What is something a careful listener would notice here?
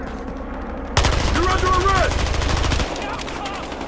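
A rifle fires a rapid burst of gunshots.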